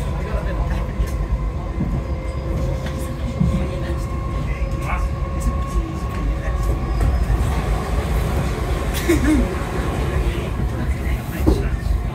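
A train rumbles and hums steadily along the track.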